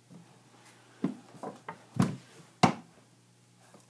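A lump of wet clay slaps and thuds onto a table.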